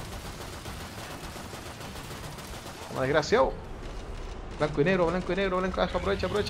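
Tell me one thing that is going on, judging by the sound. Pistol shots fire in quick bursts.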